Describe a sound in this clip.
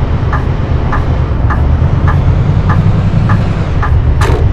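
A turn indicator ticks steadily.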